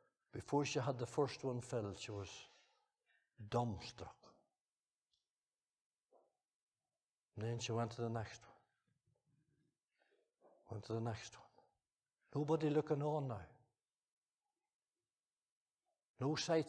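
An elderly man speaks slowly and deliberately through a microphone, with pauses between phrases.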